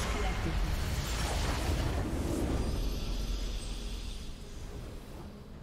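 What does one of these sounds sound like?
A deep explosion booms and rumbles, then slowly fades.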